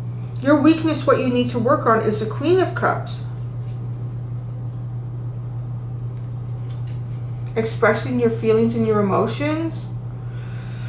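A middle-aged woman speaks calmly and close to the microphone.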